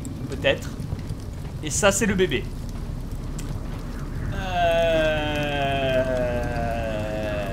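Torch flames crackle softly.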